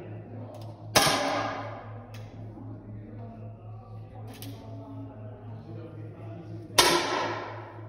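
An air rifle fires with a sharp crack that rings briefly.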